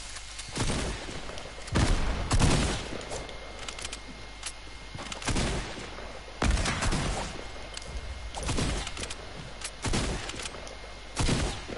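Wooden walls are built with sharp knocking thuds.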